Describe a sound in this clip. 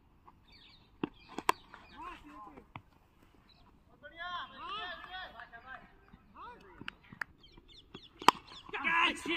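A cricket bat sharply cracks against a ball.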